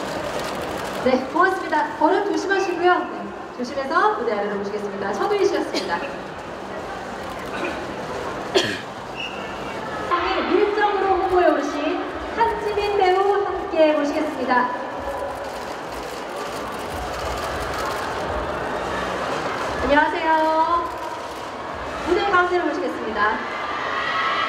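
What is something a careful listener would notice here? A young woman announces through a microphone and loudspeakers in a large echoing hall.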